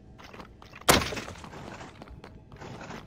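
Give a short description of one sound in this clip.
A skeleton collapses with a clattering of bones.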